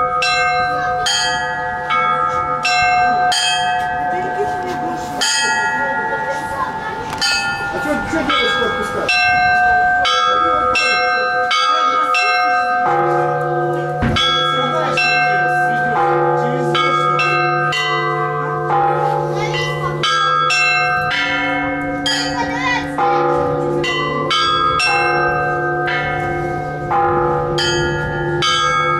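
Small bells ring out in a quick, lively rhythm.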